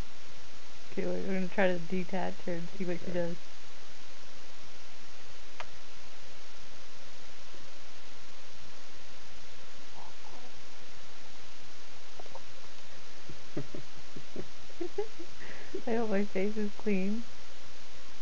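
A woman speaks softly and sweetly up close.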